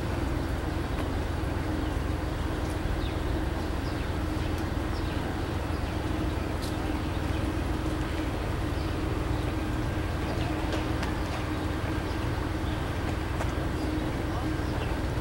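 Train wheels click and squeal on the rails.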